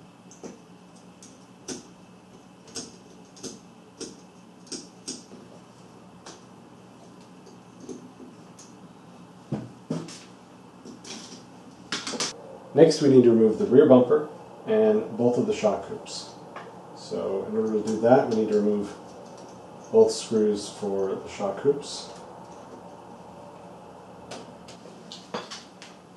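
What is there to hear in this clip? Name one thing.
A small screwdriver clicks and taps against metal parts.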